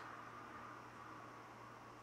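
Oil pours into a pan.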